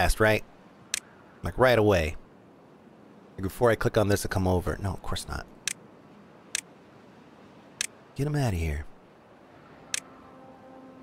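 A game interface gives short clicks as menus open.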